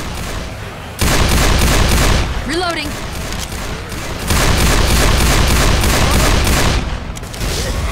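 A pistol fires rapid shots.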